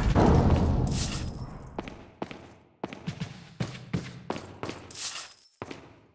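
A bright, shimmering chime rings out.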